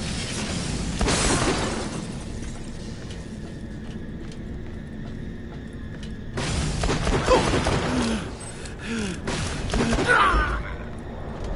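Guns fire in loud rapid bursts.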